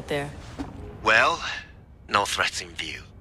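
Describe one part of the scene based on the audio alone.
A man answers calmly over a radio.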